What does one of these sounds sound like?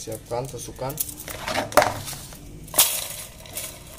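Bundled wooden skewers rattle and clatter.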